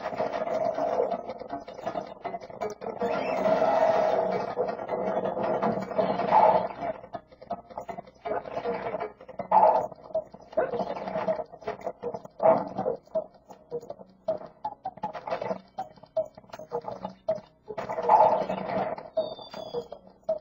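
Upbeat video game music plays through a television speaker.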